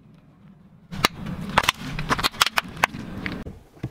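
Plastic pods burst and crackle under a tyre.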